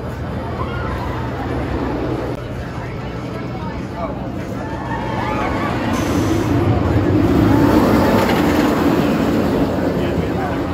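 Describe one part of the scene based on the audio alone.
Riders scream and shout from a passing roller coaster.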